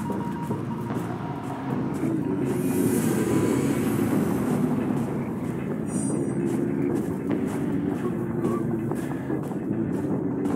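Footsteps tread quickly over grass and ground.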